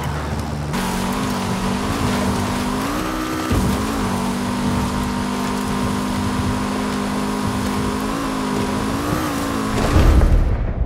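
Tyres rumble over rough dirt.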